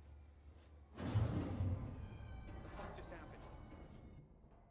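A metal vent cover bangs open with a scraping rush.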